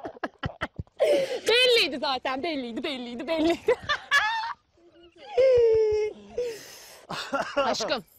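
A young woman talks cheerfully.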